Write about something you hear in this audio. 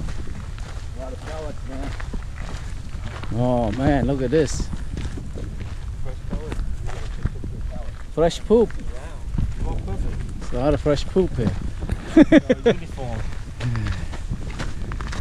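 A man talks casually close by.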